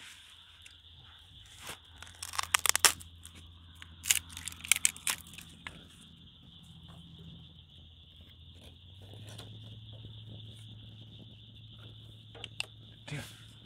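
Pieces of wood clatter as a man handles them.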